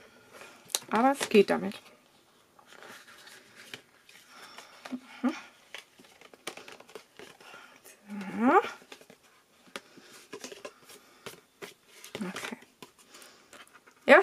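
A plastic sheet crinkles and rustles as hands fold it.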